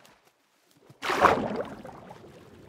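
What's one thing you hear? Water splashes loudly as something plunges in.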